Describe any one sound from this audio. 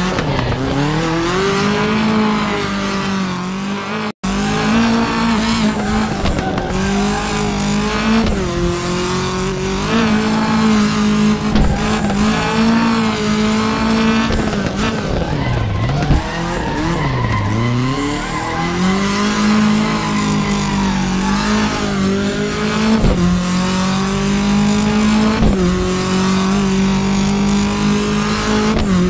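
A rally car engine roars and revs hard, its pitch rising and dropping with gear changes.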